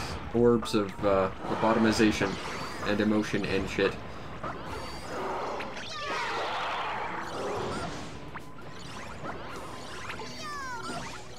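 A magical zap sparkles and whooshes.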